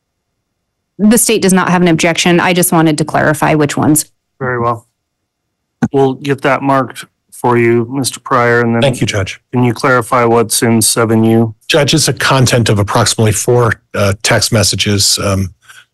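A man speaks steadily through a microphone, heard over an online call.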